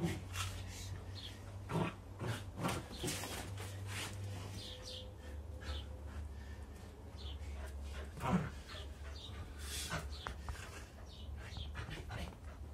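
A man talks playfully to a puppy nearby.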